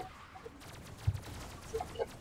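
A laser gun fires with sharp zaps.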